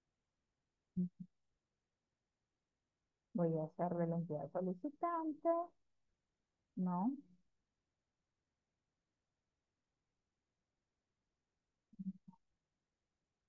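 A woman speaks calmly through an online call, in short phrases.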